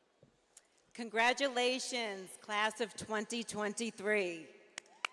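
A woman speaks calmly into a microphone, heard over loudspeakers in a large echoing hall.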